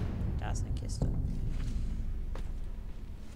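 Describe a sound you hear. Footsteps land on stone.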